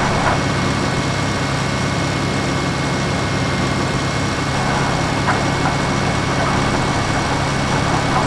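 A tractor engine drones steadily under load.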